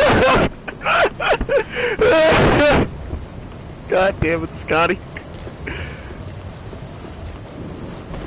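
Armoured footsteps run up stone stairs.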